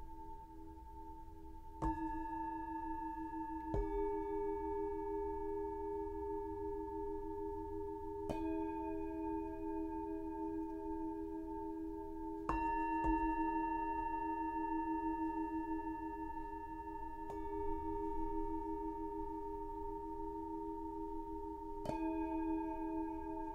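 Metal singing bowls are struck softly and ring out in long, overlapping tones.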